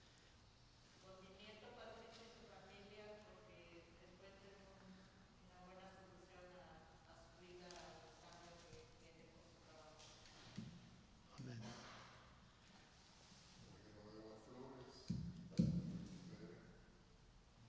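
An elderly man speaks calmly through a microphone in a room with a slight echo.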